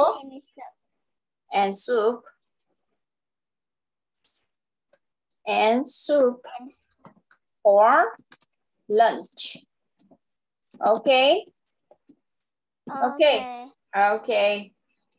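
A woman speaks slowly and clearly over an online call, reading out short phrases.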